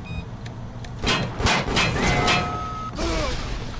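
Gunshots bang in quick bursts.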